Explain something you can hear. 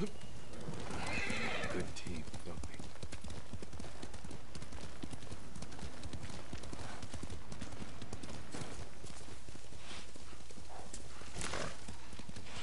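A horse gallops, hooves thudding on leaf-covered ground.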